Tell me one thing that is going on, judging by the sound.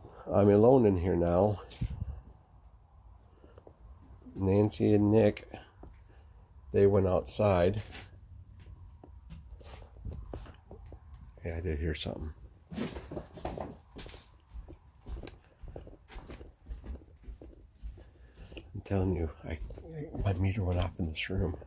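Footsteps shuffle slowly across a hard floor.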